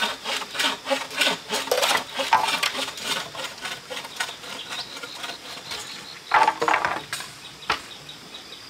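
Bamboo poles knock and clatter against each other.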